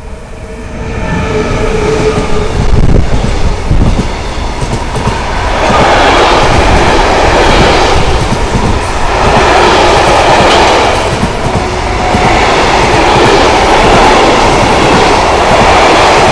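Freight wagons rumble and clatter loudly past on the rails close by.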